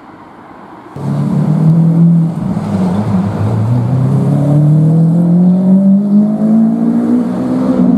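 A sports car engine revs hard, its pitch climbing steadily.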